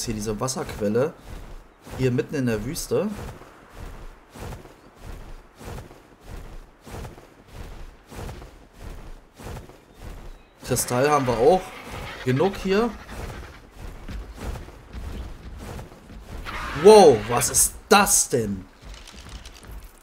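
A large bird flaps its wings with steady, rhythmic beats.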